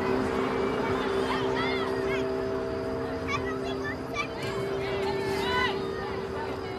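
Young women shout calls across an open field.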